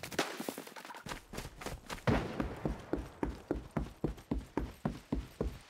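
Heavy footsteps thud steadily on wooden boards.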